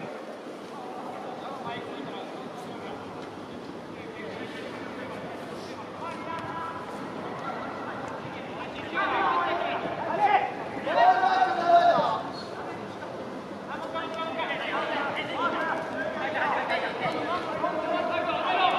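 A crowd murmurs and cheers in a large open stadium.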